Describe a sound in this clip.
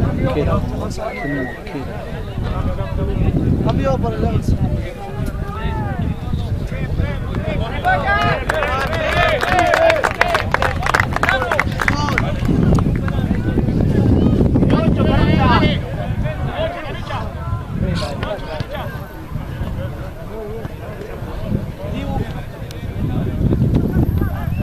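Young men shout and call to one another across an open field.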